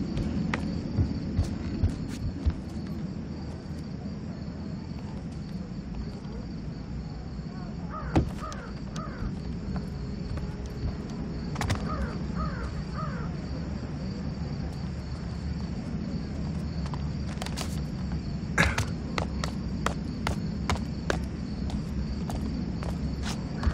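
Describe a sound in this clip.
Footsteps tread softly on stone.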